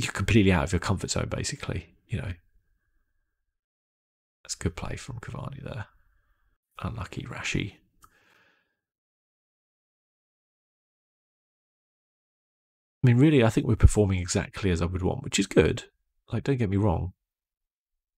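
A man talks calmly and closely into a microphone, in bursts with pauses.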